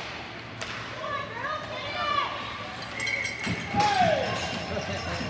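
Young players shout and call out in a large echoing arena.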